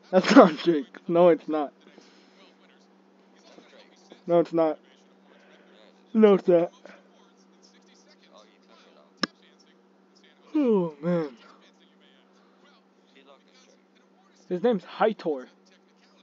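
A man speaks in short bursts through a microphone.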